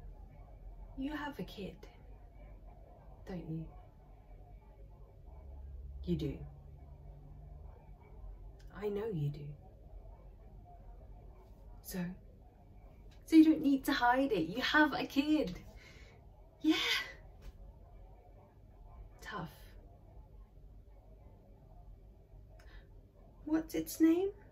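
A young woman speaks close to a microphone in short, calm phrases with pauses.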